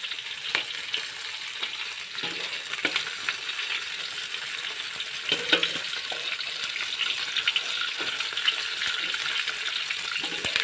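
A metal spatula scrapes and taps against the pan.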